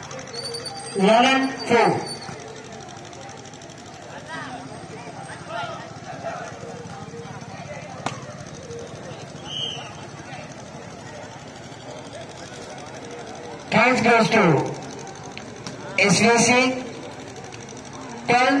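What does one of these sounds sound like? A large crowd of spectators cheers and shouts loudly outdoors.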